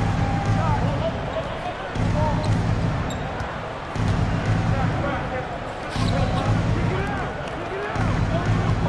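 A crowd murmurs in a large arena.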